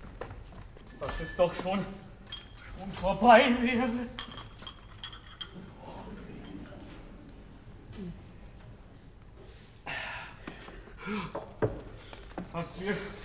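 A man sings loudly, with a hall's echo.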